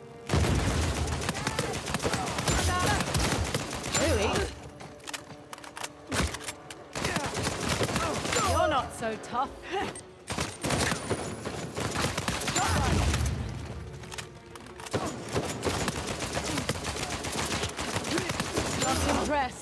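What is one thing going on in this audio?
Rifles fire in rapid bursts.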